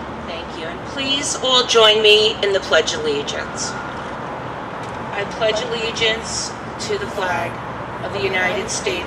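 A man calls out commands loudly outdoors.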